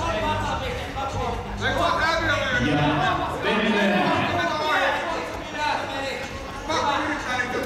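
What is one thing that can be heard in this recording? Spectators shout and call out loudly in a large echoing hall.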